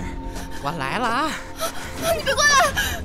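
A man laughs gleefully.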